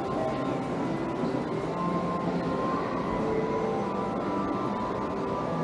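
People walk and chatter faintly in a large, echoing covered passage.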